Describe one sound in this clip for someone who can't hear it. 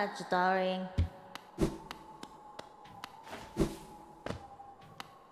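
A sword slashes with sharp whooshing hits.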